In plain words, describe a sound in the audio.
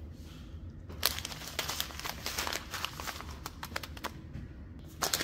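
A plastic packet crinkles in a hand.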